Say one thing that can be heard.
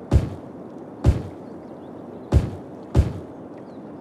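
Soft thuds sound as building tiles snap into place in a game.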